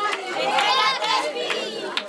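Women clap their hands.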